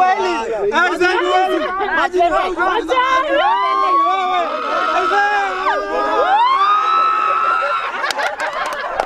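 A crowd of young people chatters and shouts excitedly close by.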